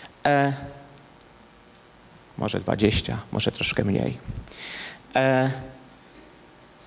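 A middle-aged man speaks calmly through a handheld microphone.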